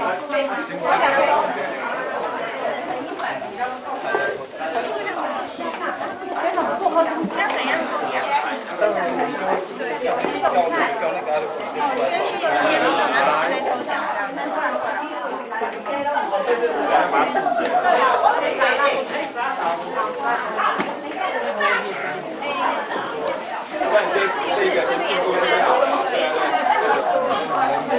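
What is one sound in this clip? Several men and women chatter all around in a busy room.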